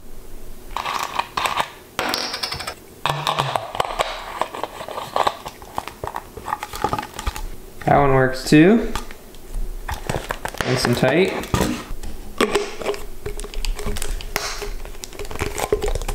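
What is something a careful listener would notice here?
A plastic bottle cap is twisted and clicks.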